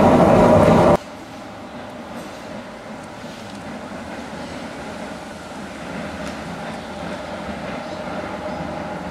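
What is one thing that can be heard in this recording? Light street traffic hums steadily in the open air.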